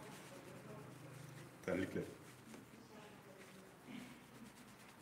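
A towel rubs against wet hair.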